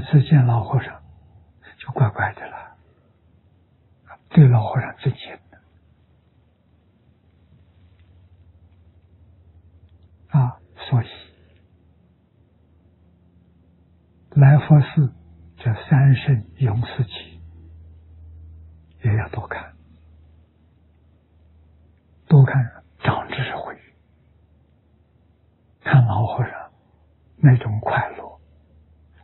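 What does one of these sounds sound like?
An elderly man speaks calmly and warmly into a microphone, in short phrases with pauses.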